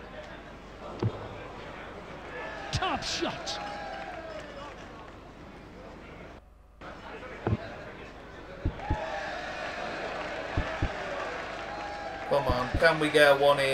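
Darts thud into a dartboard one after another.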